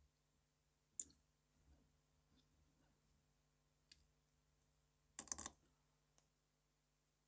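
A small metal blade clicks and scrapes against a metal jig.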